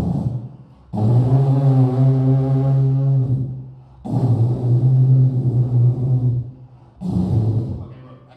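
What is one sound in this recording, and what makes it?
A young man holds long, low droning notes into a microphone, in breaths with pauses between them.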